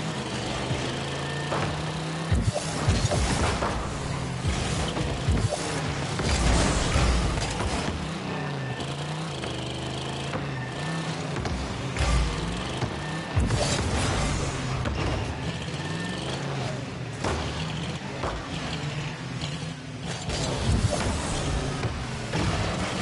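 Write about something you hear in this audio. A game car's engine hums and boosts with a rushing whoosh.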